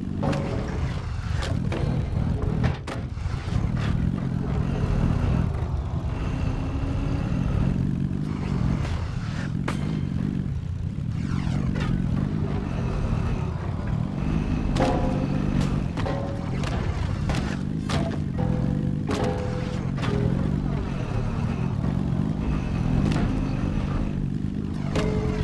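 A small vehicle's engine rumbles steadily as it drives along.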